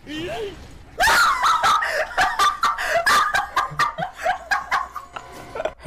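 A young man laughs loudly and heartily into a microphone.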